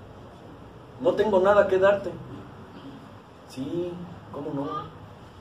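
A middle-aged man speaks slowly through a microphone in a small room, pausing between phrases.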